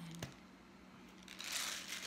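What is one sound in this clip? Liquid pours from a bottle.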